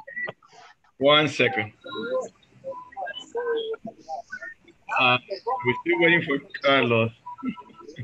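Another man talks over an online call.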